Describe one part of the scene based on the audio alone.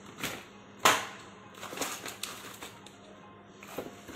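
A cardboard box is set down on concrete with a soft knock.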